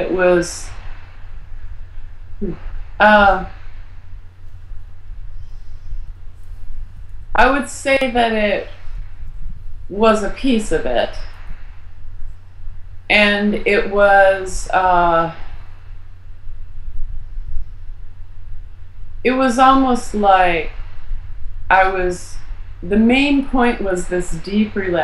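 A middle-aged woman speaks calmly and thoughtfully over an online call, with pauses.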